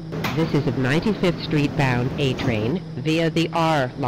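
Sliding train doors open.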